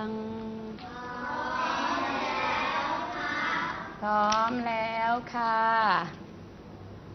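Young children chant together in unison, loud and close, in a small room.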